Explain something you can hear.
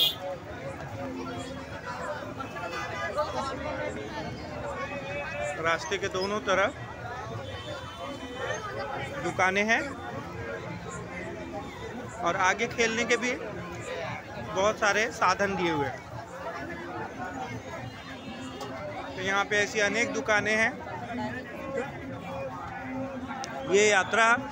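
A crowd chatters and murmurs all around outdoors.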